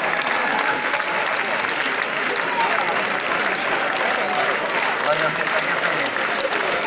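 A large crowd chatters and cheers nearby.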